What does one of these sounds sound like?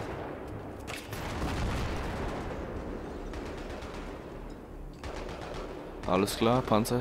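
An explosion booms and rumbles nearby.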